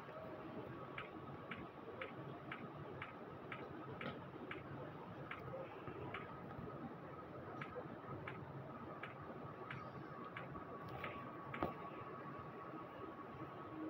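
Footsteps patter evenly on soft ground.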